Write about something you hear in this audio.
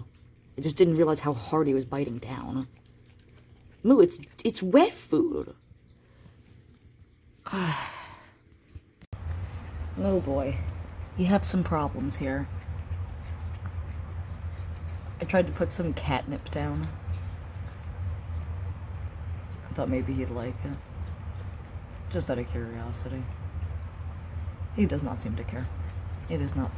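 A cat chews wet food from a plastic bowl.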